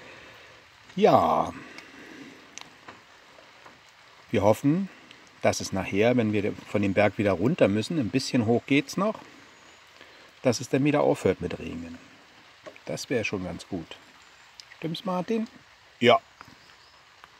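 An older man talks with animation close to the microphone.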